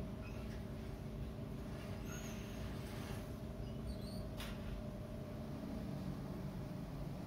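Glass bottles clink together.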